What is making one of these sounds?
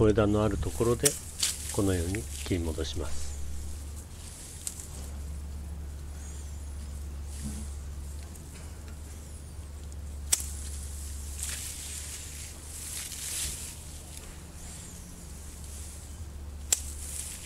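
Pruning shears snip through thin branches with sharp clicks.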